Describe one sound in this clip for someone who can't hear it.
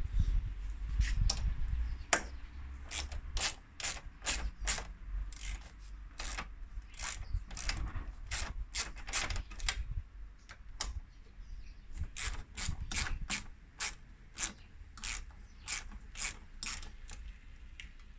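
A ratchet wrench clicks in quick bursts close by.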